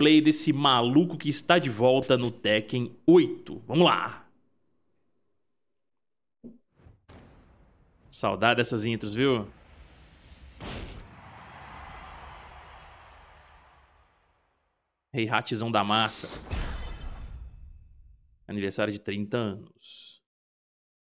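A man talks casually and with animation into a close microphone, in bursts with pauses.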